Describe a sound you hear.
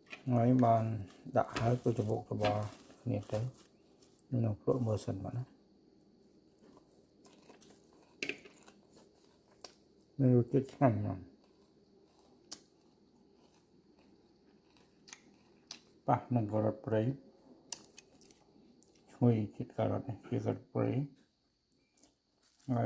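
Chopsticks toss and rustle leafy greens in a bowl, with soft clicks.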